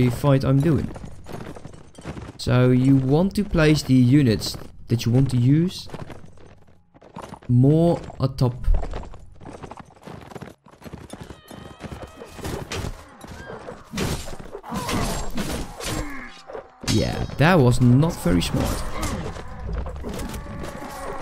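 Horses gallop across the ground.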